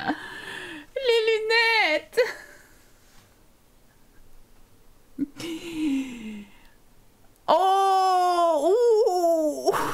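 A young woman speaks with animation into a close microphone, her voice rising and falling in pitch.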